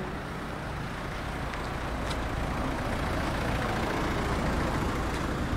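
A car drives past nearby.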